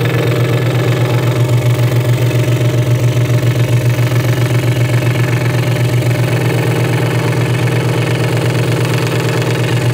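A scroll saw buzzes steadily as it cuts through wood.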